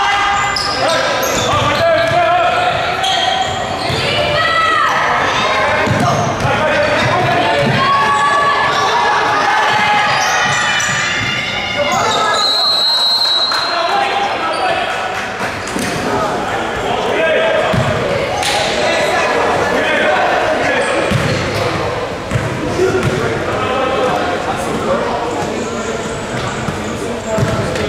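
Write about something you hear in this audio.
Spectators talk and shout throughout a large echoing gym.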